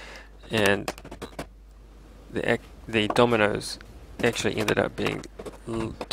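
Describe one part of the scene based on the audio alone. A mallet taps a wooden board.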